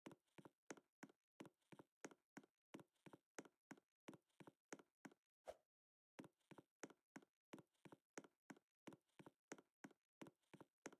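Footsteps thud quickly and evenly on the ground as a game character runs.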